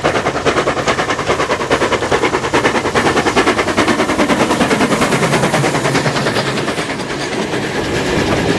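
A steam locomotive chuffs rhythmically as it passes close by.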